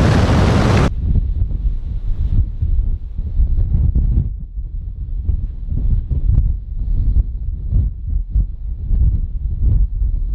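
Wind gusts roar and buffet loudly outdoors.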